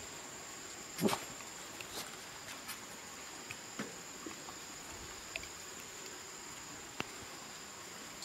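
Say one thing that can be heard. Dogs lap and chew food close by.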